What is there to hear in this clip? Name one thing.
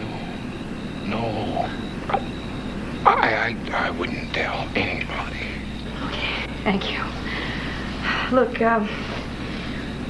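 An elderly man speaks.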